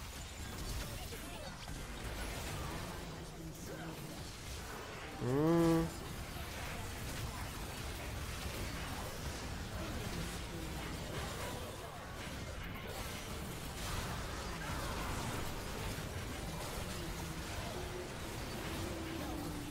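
Spell effects from a video game whoosh and crackle during a fight.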